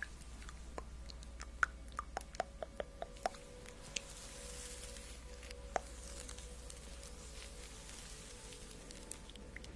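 A young woman whispers softly, very close to a microphone.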